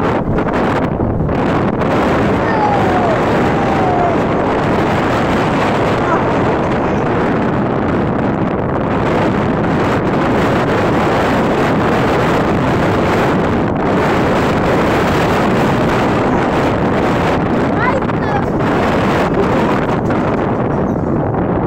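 Wind rushes loudly past.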